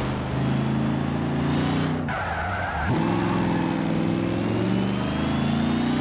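Tyres screech on wet asphalt.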